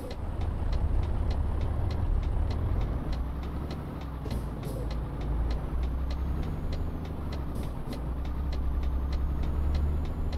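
A turn signal ticks in an even rhythm.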